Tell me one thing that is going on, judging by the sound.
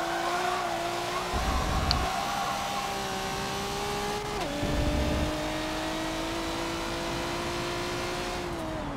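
A racing car engine drones at high revs, its pitch slowly rising.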